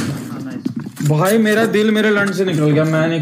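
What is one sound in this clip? A young man talks with animation into a microphone close by.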